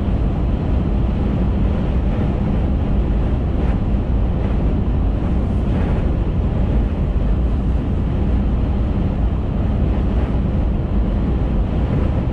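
A car drives steadily along a highway with a low, constant road rumble.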